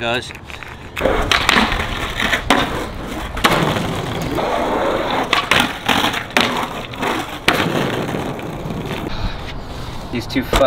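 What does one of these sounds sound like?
Skateboard wheels roll loudly over concrete.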